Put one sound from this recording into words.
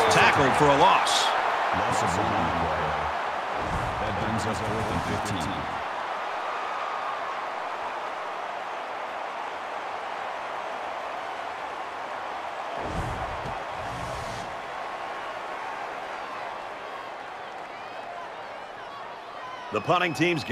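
A large crowd roars and cheers in a stadium, gradually fading.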